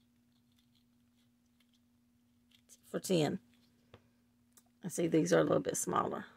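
A small plastic lid clicks and scrapes as it is unscrewed from a jar.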